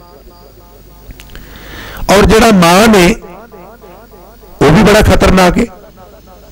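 An elderly man speaks with animation into a microphone, heard through a loudspeaker.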